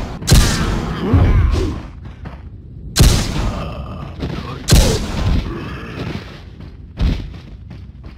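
A pistol fires loud shots, each with a ringing echo.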